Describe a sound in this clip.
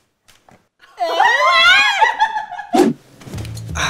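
A young woman cries out in shock.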